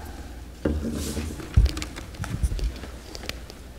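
A man speaks quietly in a large, echoing hall.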